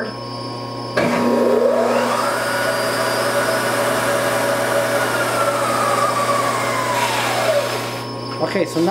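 A milling machine motor whirs up to speed, hums steadily, then winds down.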